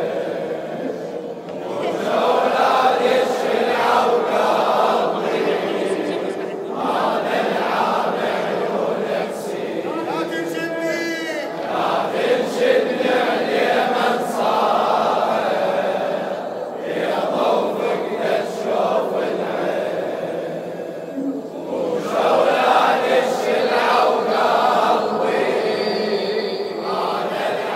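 A large crowd of men chants loudly in unison.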